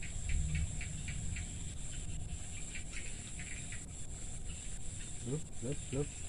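Small pieces of bait drop into still water with faint plops.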